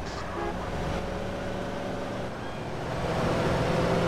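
A car engine hums as the car drives off.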